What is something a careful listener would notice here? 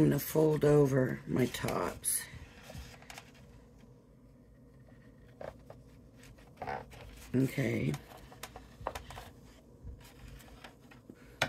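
Stiff paper rustles and scrapes as it is folded and moved.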